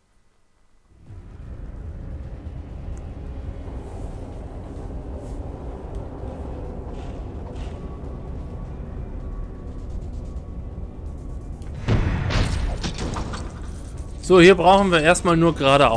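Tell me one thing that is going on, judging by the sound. A low, steady machine hum drones through a large hall.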